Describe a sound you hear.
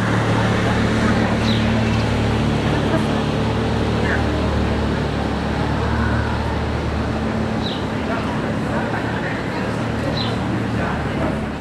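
A sports car engine rumbles deeply as the car rolls slowly away.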